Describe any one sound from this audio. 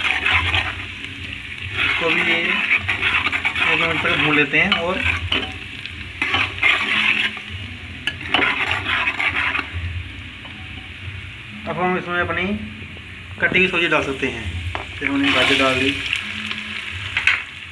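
A metal ladle scrapes against a pot while stirring.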